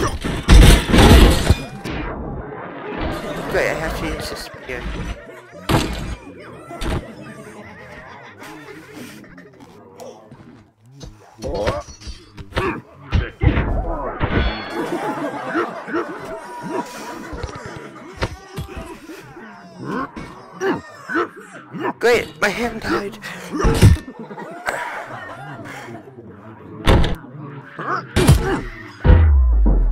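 Heavy weapons strike with loud thuds and clangs.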